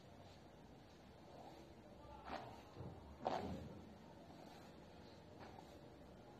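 A comb brushes through long hair with soft strokes.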